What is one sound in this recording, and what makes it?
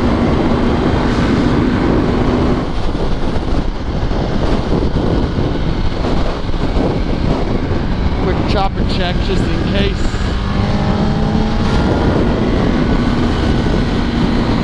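Strong wind roars steadily past a motorcycle helmet.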